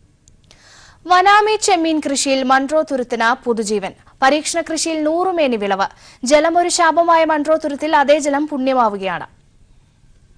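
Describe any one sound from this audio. A young woman reads out news calmly through a microphone.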